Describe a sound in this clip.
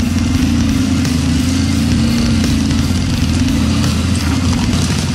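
A dirt bike engine revs loudly up close.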